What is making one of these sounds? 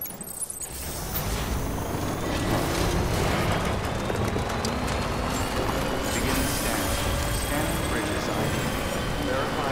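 A vehicle engine hums steadily as it drives over rough ground.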